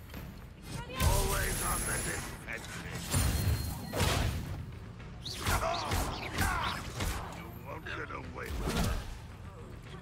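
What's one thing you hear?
Magical spells blast and crackle in bursts.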